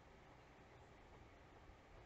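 A makeup brush softly sweeps against skin close by.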